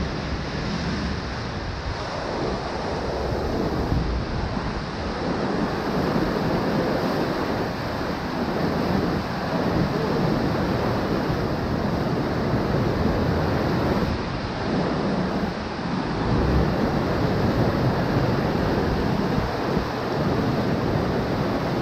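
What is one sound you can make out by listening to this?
A boat's engine roars loudly at speed.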